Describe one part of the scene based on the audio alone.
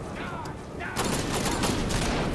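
Pistol shots crack.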